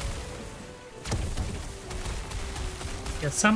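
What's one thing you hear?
A fiery spell blasts with a rushing roar.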